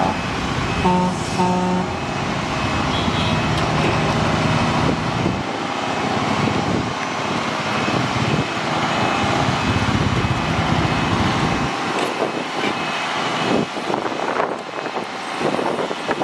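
A heavy dump truck's diesel engine rumbles nearby.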